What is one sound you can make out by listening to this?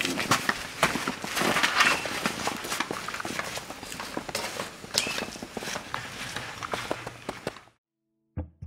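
Footsteps walk on the ground outdoors.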